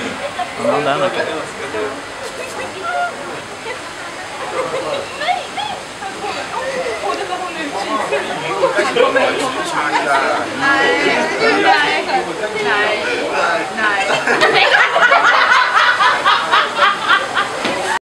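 A crowd of visitors chatters nearby.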